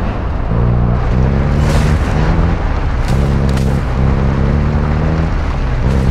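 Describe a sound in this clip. Tyres rumble over rough ground.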